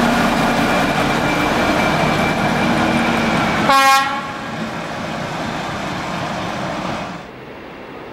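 A diesel locomotive engine rumbles and drones close by.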